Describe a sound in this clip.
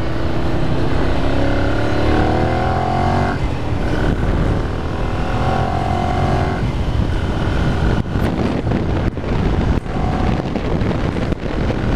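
A motorcycle engine hums and revs as it rides.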